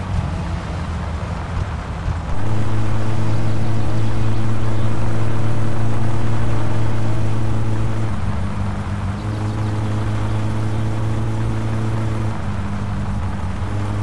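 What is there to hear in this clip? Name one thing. A car engine drones steadily, rising and falling as gears change.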